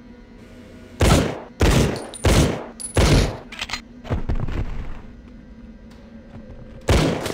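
A pistol fires loud single shots in an echoing space.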